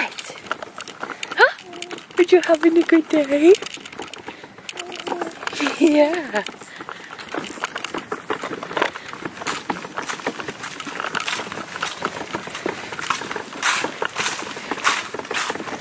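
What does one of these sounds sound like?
Stroller wheels rattle and bump over wooden boards.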